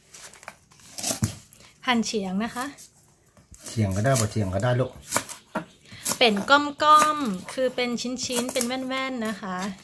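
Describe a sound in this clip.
A knife chops through stalks on a wooden board with sharp knocks.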